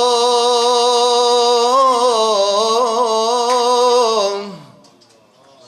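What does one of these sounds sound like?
A man chants a long held melodic phrase into a microphone, then falls silent.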